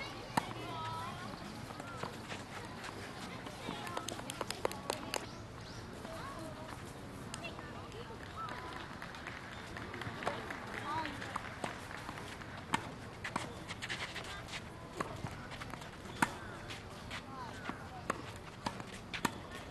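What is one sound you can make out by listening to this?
Tennis balls are struck with rackets, popping again and again outdoors.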